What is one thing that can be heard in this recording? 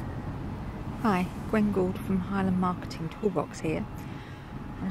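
A middle-aged woman speaks calmly, close to the microphone.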